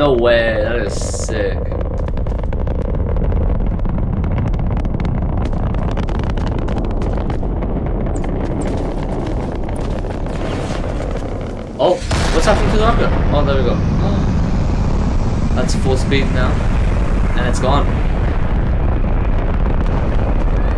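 A rocket roars steadily as it climbs into the sky.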